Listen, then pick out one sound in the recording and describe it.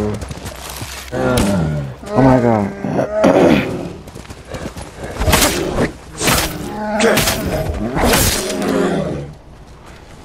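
A bear growls and roars.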